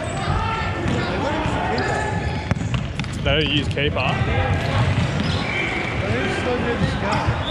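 Shoes squeak sharply on a wooden floor in a large echoing hall.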